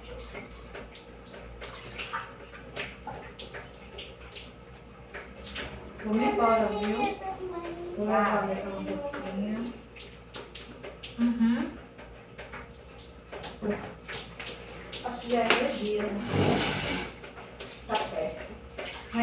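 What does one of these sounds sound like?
Water splashes softly in a basin.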